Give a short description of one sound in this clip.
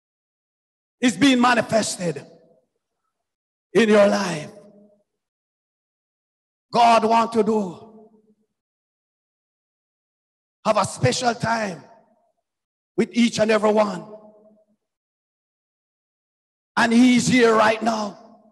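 A man preaches into a microphone in short, forceful phrases with pauses between them.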